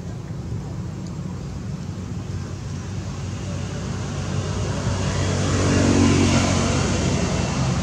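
A monkey munches juicy fruit close by.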